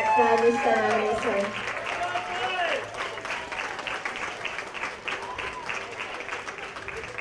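A group of people clap their hands steadily in a large hall.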